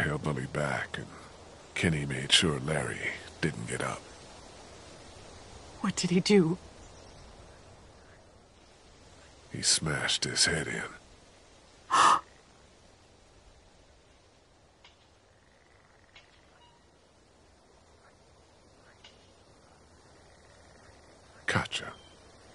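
A man speaks in a worried, pleading voice.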